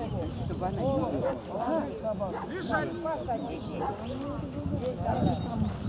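Several people talk with animation close by.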